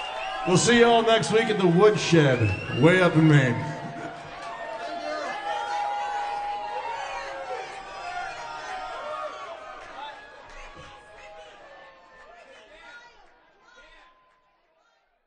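A live band plays music that slowly fades away.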